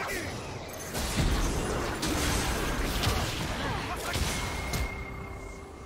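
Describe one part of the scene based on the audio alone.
Magic blasts hit with sharp impacts.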